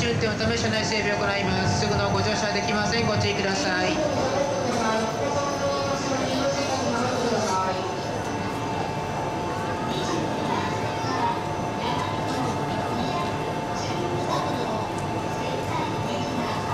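An arriving train whines steadily as it slows to a stop.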